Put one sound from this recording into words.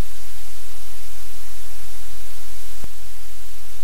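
A dog shifts and rustles its bedding.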